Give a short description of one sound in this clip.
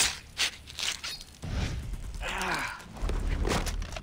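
A knife cuts wetly through flesh.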